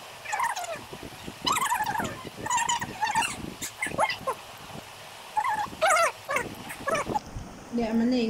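A young woman talks animatedly close by.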